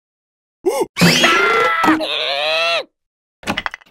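A high, squeaky cartoon voice squeals and babbles excitedly.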